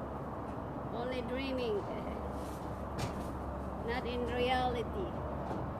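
A young girl speaks nearby in a cheerful voice.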